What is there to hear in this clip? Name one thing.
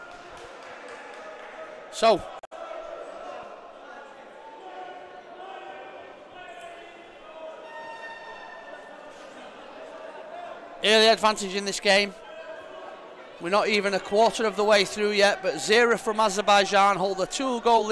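A small crowd murmurs and chatters in a large echoing hall.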